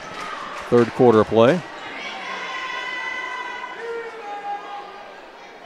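A crowd murmurs in an echoing gym.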